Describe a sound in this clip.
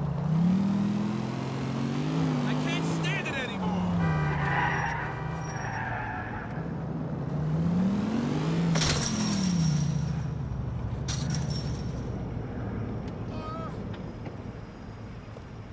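A truck engine hums and revs up and down as it drives.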